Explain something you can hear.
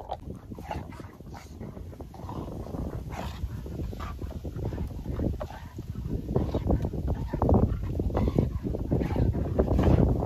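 A dog's paws scuffle and thud on grass.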